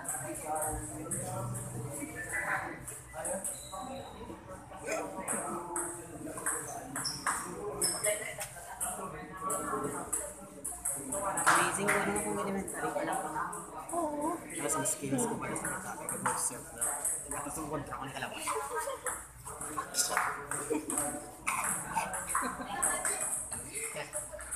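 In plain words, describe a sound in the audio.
A table tennis ball clicks back and forth on paddles and the table.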